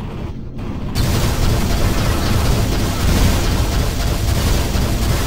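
A loud blast roars and crackles.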